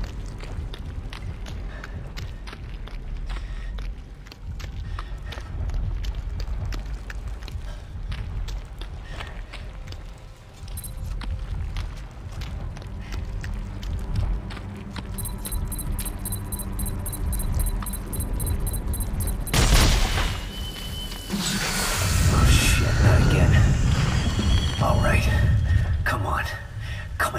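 Heavy boots thud on the ground in slow steps.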